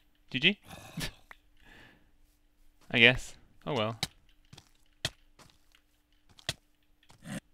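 A sword lands sharp, quick hits.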